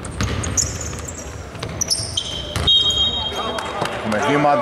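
Basketball shoes squeak on a hardwood court in a large echoing arena.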